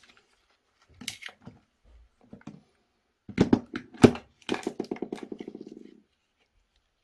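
Plastic parts click and snap as they are handled.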